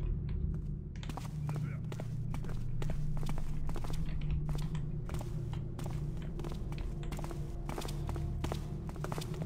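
Footsteps tread steadily on cobblestones.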